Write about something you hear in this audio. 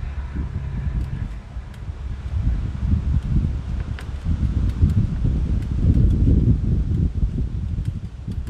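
Metal wire scrapes and clicks sharply.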